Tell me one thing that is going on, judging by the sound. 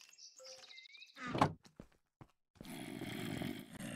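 A wooden chest shuts with a thud.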